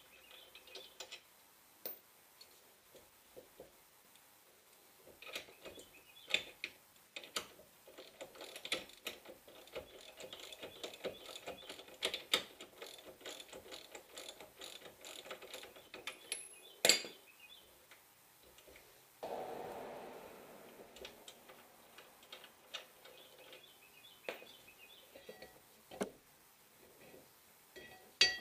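Metal parts click and scrape close by.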